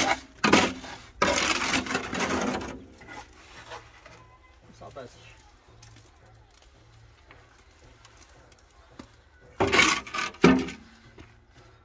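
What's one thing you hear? A shovel scrapes wet mortar.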